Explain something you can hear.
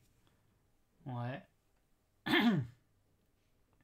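A man briefly exclaims into a microphone.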